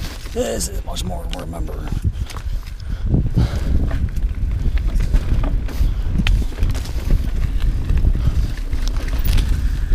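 Bicycle tyres rumble and crunch over a dirt trail through dry leaves.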